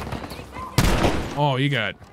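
A shotgun fires with a loud blast.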